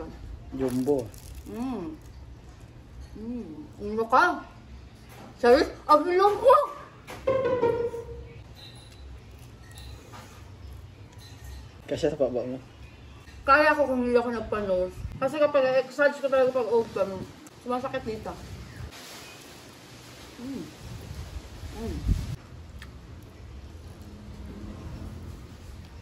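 A young woman chews and bites into crispy food.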